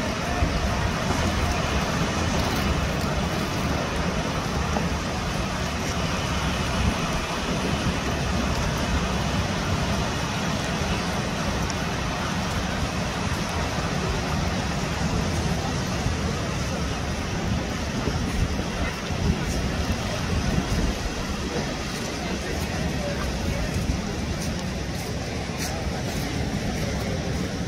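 Waves break and wash steadily onto a rocky shore.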